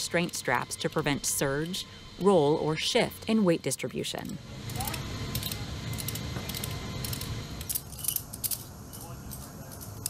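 A ratchet strap clicks as it is tightened.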